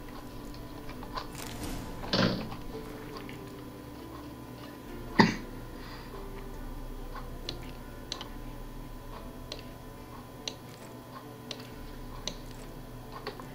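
Short menu clicks sound as items are picked.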